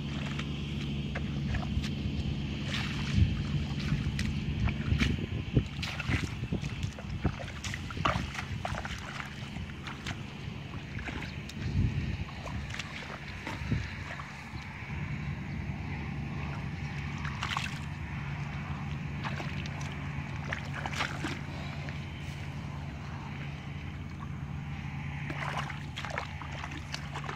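Bare feet squelch and splash through shallow muddy water.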